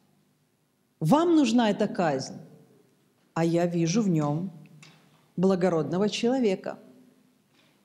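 A middle-aged woman speaks with animation into a microphone, in short bursts.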